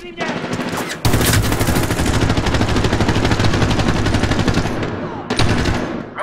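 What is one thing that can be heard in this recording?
A machine gun fires a long, rapid burst close by.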